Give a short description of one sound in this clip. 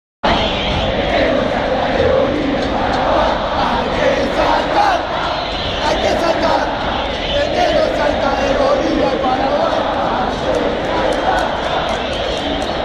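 A huge stadium crowd chants and sings loudly in unison, echoing through an open arena.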